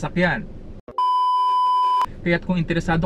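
A steady high test tone beeps.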